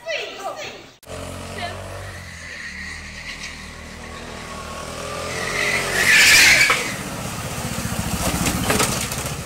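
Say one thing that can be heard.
A go-kart engine buzzes and grows louder as it comes closer.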